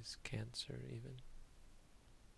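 A man speaks calmly into a nearby microphone.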